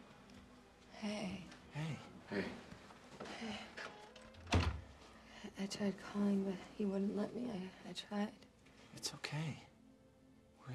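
A young woman speaks quietly and unsteadily.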